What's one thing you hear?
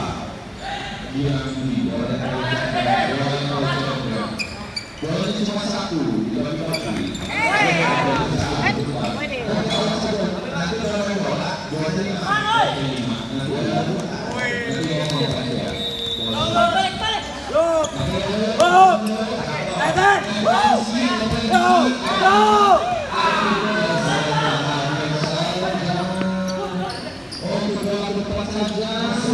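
Young men shout to each other while playing.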